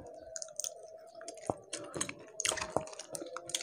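Crispy fried fish crackles as a young man tears it apart with his fingers.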